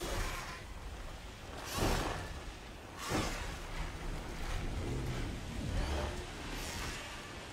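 A giant bird's wings beat with heavy whooshes.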